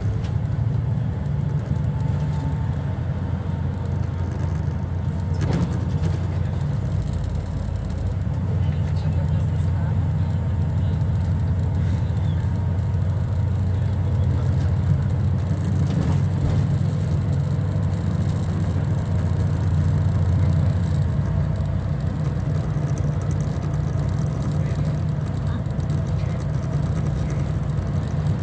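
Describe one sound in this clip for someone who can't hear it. A vehicle's engine rumbles low and steady from inside as it rides along.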